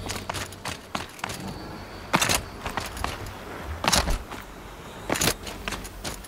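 Footsteps crunch over rocky ground at a steady pace.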